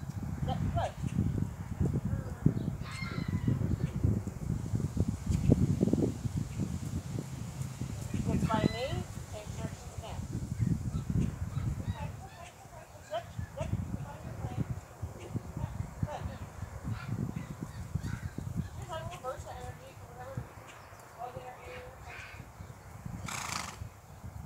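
A horse's hooves thud on grass as it trots in circles.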